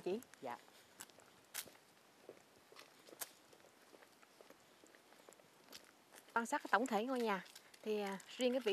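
Footsteps in sandals scuff along a paved path.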